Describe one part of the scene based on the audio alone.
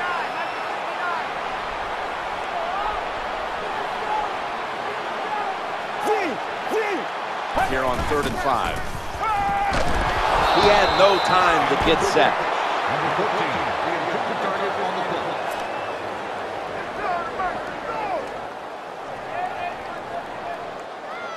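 A large crowd roars in a stadium, swelling loudly for a few seconds.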